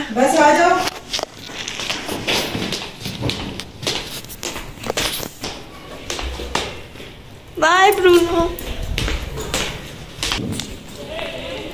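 Footsteps tread on stairs and hard ground.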